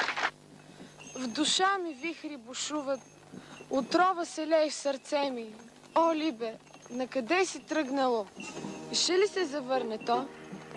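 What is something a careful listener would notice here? A woman speaks quietly nearby.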